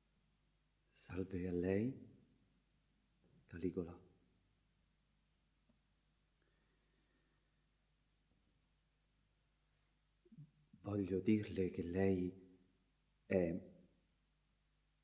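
A man speaks slowly and closely in short, separate bursts.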